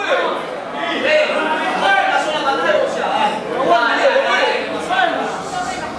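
A man counts out loud nearby.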